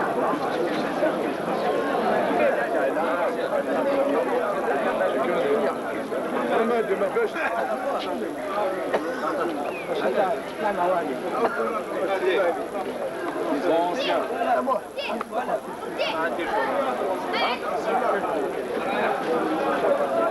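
A crowd of men chatter outdoors.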